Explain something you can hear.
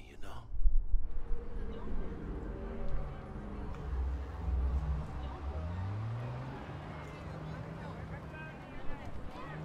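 A car engine rumbles and revs higher as the car speeds away.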